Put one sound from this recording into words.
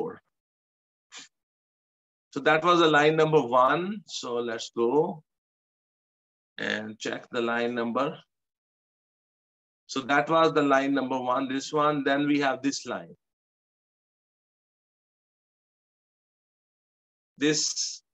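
A middle-aged man speaks calmly through a microphone, explaining in short bursts with pauses.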